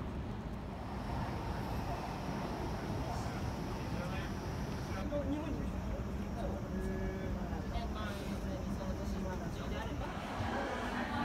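A small crowd murmurs and chatters nearby outdoors.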